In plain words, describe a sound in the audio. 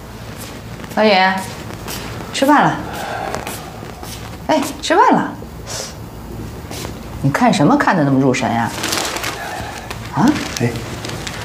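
A woman speaks calmly and close by.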